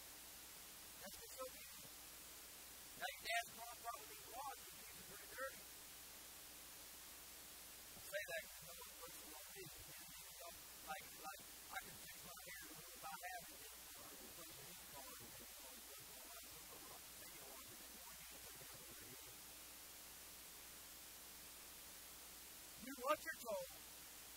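A man preaches with animation through a microphone in a large echoing hall, pausing between bursts of speech.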